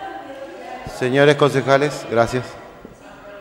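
A man speaks clearly through a microphone in an echoing hall.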